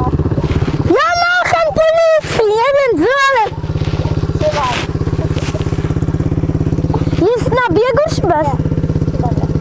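A young man talks loudly close by over the engine.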